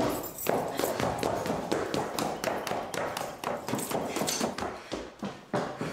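Footsteps hurry down wooden stairs.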